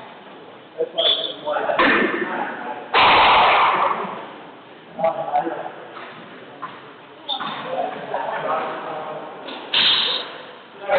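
A squash ball smacks hard against the walls again and again in an echoing court.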